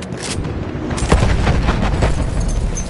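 A loud explosion booms and roars close by.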